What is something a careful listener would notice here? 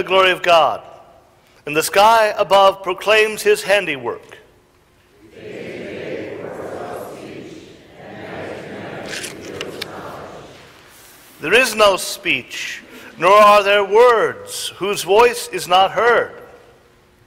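A man chants in a sung voice through a microphone in a large echoing hall.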